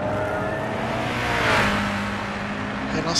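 A racing car passes close by with a rising and falling whoosh.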